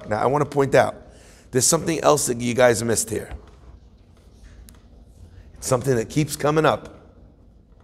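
A man speaks calmly close to the microphone in short bursts.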